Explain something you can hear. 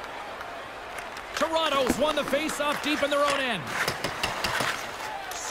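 Hockey sticks clack against a puck on ice.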